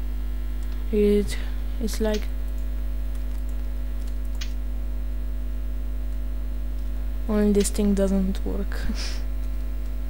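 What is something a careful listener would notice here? Short plucked musical notes ring out in quick bursts.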